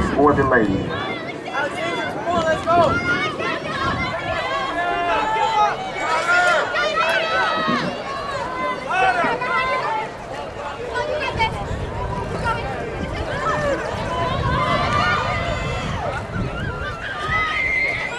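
Several young women shout encouragement close by.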